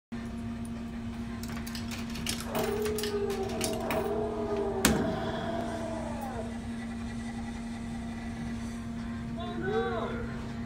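Electronic game music and sound effects play from an arcade machine's loudspeaker.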